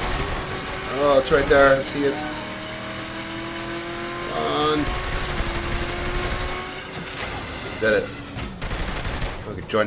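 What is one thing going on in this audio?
A car engine roars as the car speeds along.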